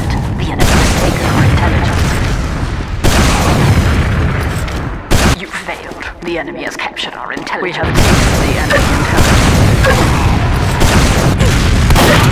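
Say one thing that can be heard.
A rocket launcher fires with loud booms.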